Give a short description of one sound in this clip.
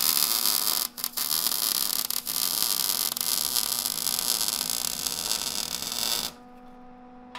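A welding arc crackles and hisses steadily.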